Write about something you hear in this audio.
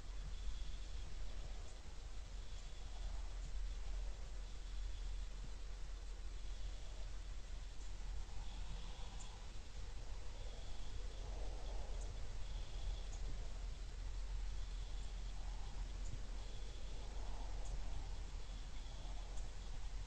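Light wind blows softly outdoors.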